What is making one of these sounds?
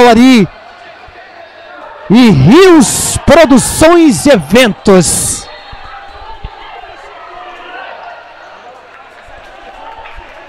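A crowd cheers in a large echoing hall.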